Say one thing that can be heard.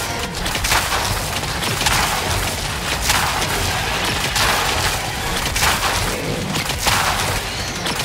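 Explosions rumble low and deep.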